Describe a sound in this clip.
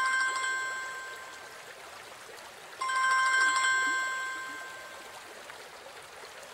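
A phone ringtone plays in bursts.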